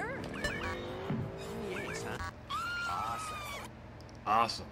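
Arcade game sound effects zap and whoosh.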